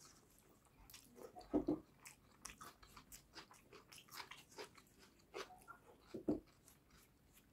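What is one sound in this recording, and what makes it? A man chews food close to a microphone with wet smacking sounds.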